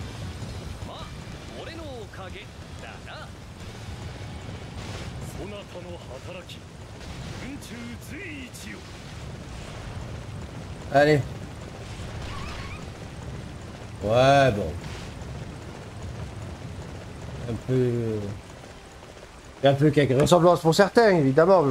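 A man talks into a microphone close by, with animation.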